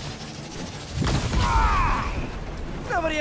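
An explosion bursts with a deep rumbling roar.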